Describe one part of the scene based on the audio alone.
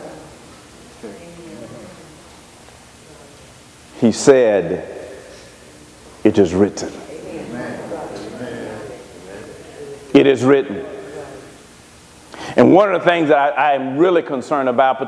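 A man preaches with animation into a microphone, his voice echoing in a large hall.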